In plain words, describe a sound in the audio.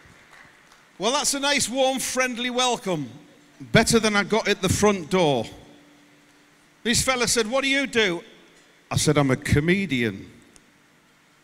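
A middle-aged man speaks with animation through a microphone and loudspeakers.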